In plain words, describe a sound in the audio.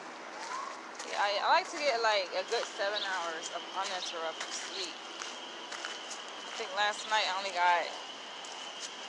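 A young woman talks close to the microphone.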